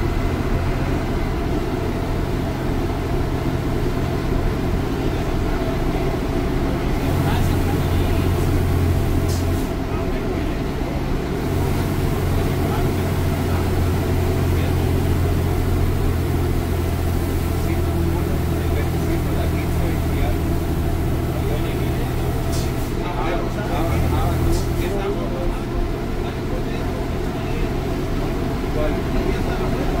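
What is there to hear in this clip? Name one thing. A bus diesel engine rumbles loudly and steadily as the bus drives along a road.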